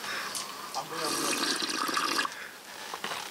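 A man slurps soup noisily from a pot.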